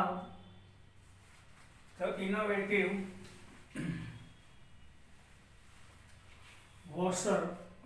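A man speaks calmly and explains, close by, in short bursts with pauses.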